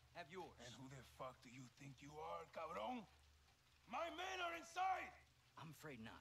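A man speaks in a low, threatening voice.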